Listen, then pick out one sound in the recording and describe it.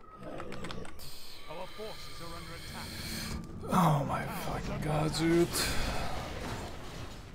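Battle sounds from a video game clash and crackle.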